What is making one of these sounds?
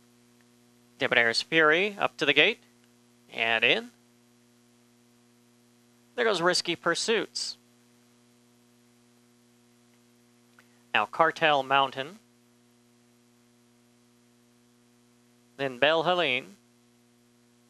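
A man calls out loudly in short bursts.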